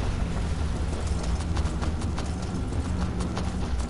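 Footsteps fall on rocky ground.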